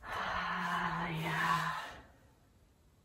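A middle-aged woman cries out loudly and emotionally, close by.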